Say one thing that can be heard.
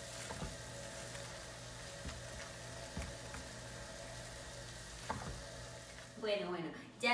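A spatula scrapes and stirs food in a pan.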